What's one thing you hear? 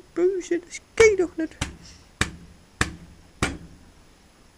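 Fingers tap on a metal cover a few times.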